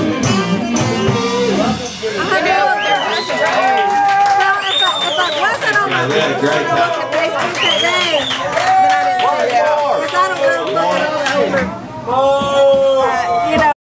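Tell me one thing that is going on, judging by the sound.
A live band plays loudly.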